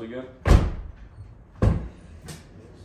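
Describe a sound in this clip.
A car door creaks open.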